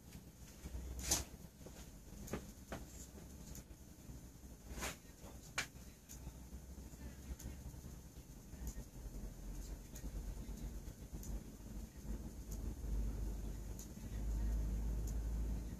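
Candle wicks crackle and pop softly.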